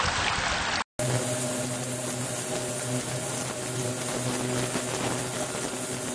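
Water pours from a spout and splashes into a tank.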